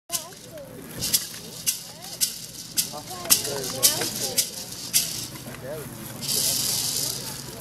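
Young people in a crowd shout and whoop nearby.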